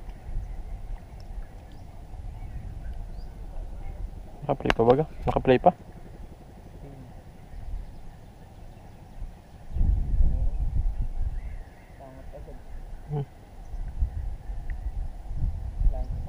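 A paddle splashes softly in calm water.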